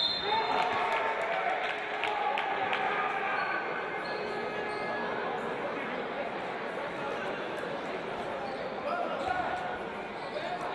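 A crowd in a large echoing hall cheers and chatters.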